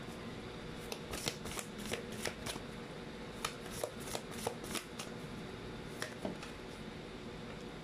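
Playing cards flick and slap softly as a deck is shuffled by hand.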